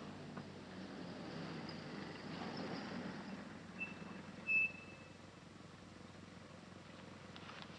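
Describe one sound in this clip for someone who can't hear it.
A man breathes slowly and heavily close by.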